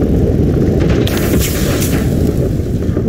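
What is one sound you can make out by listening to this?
Steam hisses in a short burst.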